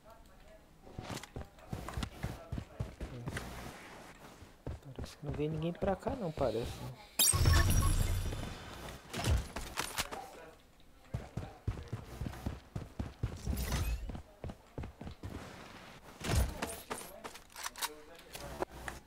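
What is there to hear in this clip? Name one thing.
Footsteps tap quickly across a hard floor.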